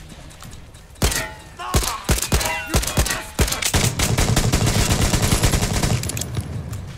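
A gun fires a rapid burst of shots that echo around.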